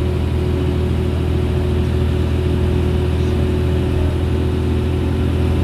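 The diesel engine of a Leyland National bus drones while cruising, heard from inside.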